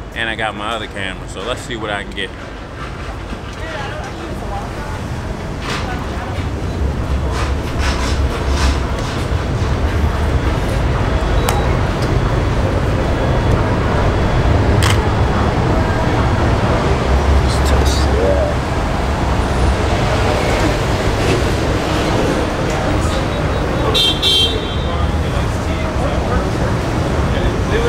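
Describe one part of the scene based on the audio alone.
Traffic hums steadily outdoors.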